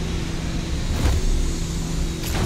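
A metal crate hisses open with a burst of steam.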